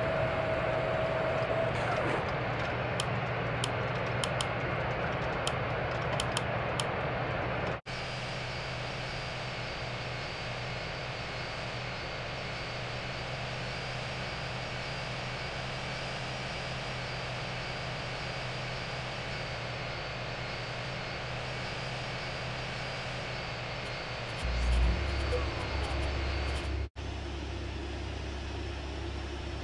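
A jet airliner's engines hum steadily as the plane rolls along the ground.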